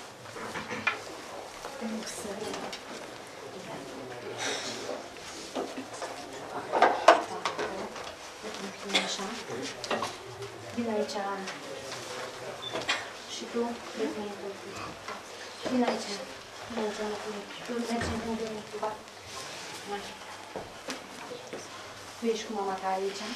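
An elderly woman talks calmly nearby, explaining.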